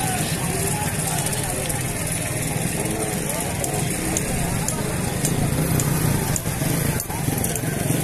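A crowd murmurs outdoors in the background.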